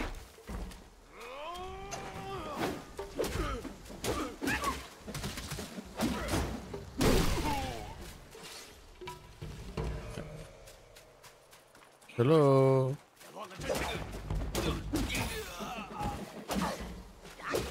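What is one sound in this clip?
An adult man talks with animation through a microphone.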